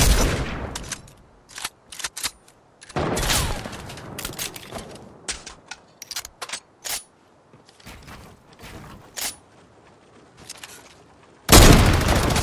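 Building pieces click and snap into place in a video game.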